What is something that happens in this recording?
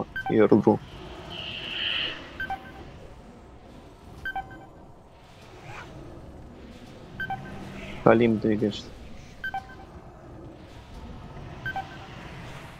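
Magical spell effects whoosh and crackle in a game battle.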